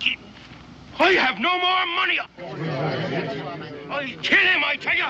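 A middle-aged man shouts loudly up close.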